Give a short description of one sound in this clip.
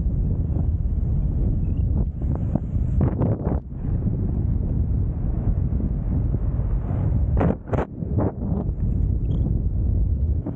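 Wind rushes and buffets loudly past a microphone outdoors.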